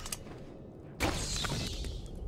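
A stone seal shatters with a loud crunch.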